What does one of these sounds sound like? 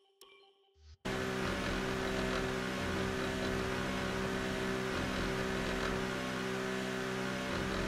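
A racing car engine idles with a steady, rough hum.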